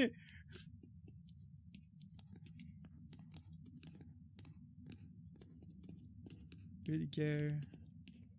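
Footsteps tap softly on a stone floor.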